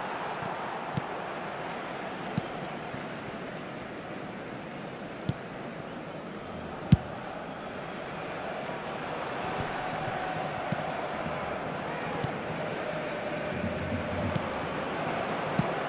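A football is kicked with dull thuds, now and then.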